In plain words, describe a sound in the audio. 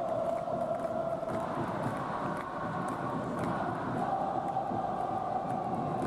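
A large stadium crowd chants and sings loudly.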